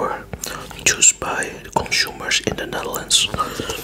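A man whispers close to a microphone.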